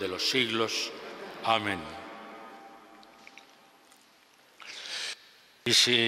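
An elderly man chants slowly through a microphone in a large echoing church.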